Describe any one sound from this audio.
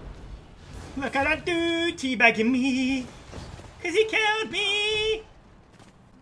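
A young man shouts loudly with excitement into a microphone, close by.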